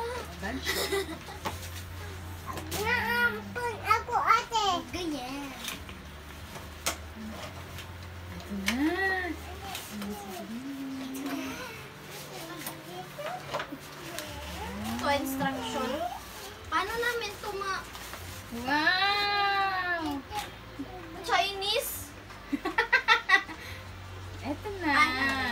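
A young girl speaks with excitement.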